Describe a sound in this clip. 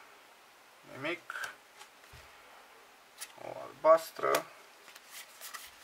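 Cards slide and flick against each other as they are handled.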